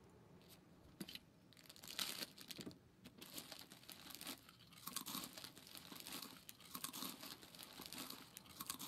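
Cloth rustles and crinkles as a bandage is unwrapped close by.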